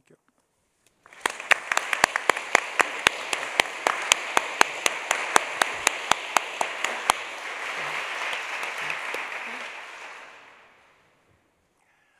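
An audience applauds in a large hall, and the clapping fades away.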